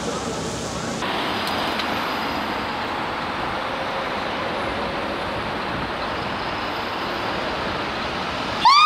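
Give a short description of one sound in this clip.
A fire engine's diesel engine idles and rumbles.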